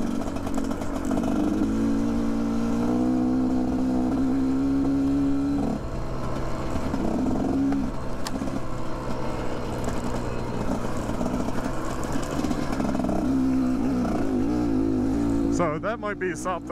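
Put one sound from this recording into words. Tyres crunch over gravel and rocks.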